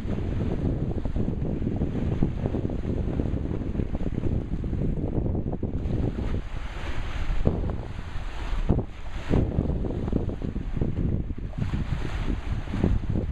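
Wind gusts across open water and buffets the microphone.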